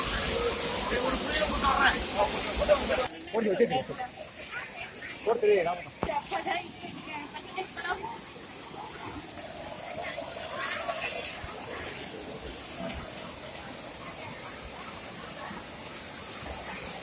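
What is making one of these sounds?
Water rushes and splashes over a waterfall.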